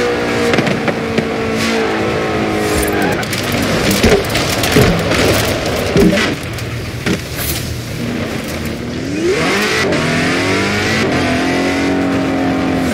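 A sports car engine roars at high revs.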